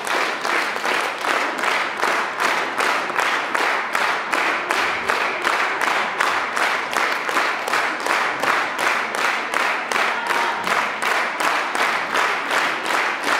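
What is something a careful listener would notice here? An audience claps in steady rhythm in an echoing hall.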